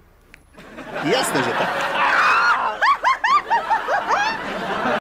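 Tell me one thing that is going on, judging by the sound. A young woman laughs and squeals playfully close by.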